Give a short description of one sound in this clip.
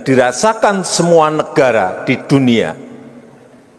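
A man speaks firmly into a microphone in a large echoing hall.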